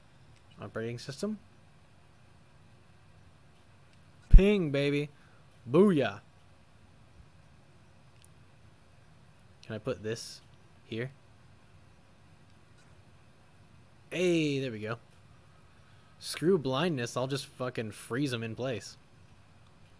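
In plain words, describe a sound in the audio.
A young man talks calmly into a close microphone, in short phrases with pauses.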